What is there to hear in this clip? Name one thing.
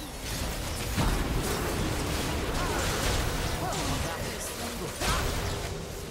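Thuds and impacts hit in quick succession.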